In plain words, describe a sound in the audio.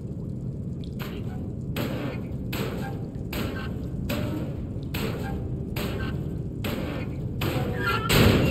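A wooden crate knocks and scrapes as it is shoved along.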